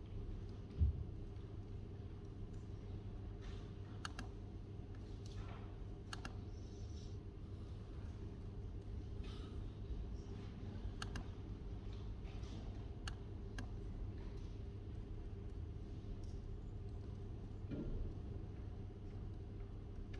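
Fingers tap lightly on a laptop keyboard.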